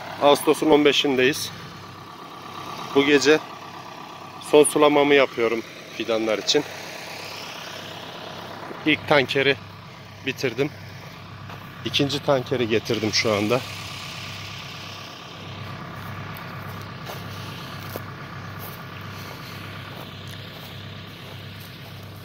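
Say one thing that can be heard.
A tractor engine idles nearby with a low steady hum.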